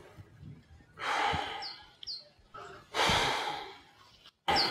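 A man sighs heavily.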